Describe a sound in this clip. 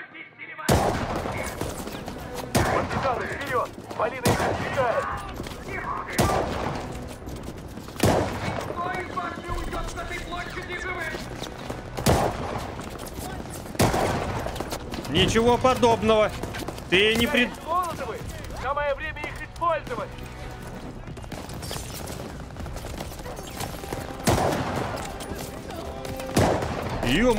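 Rifle shots crack loudly.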